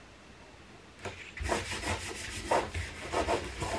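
Hands press and rub paper flat.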